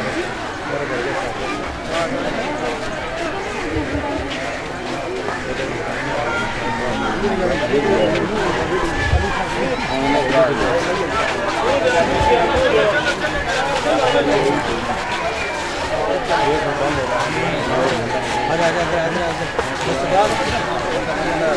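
A large crowd of men murmurs and talks outdoors.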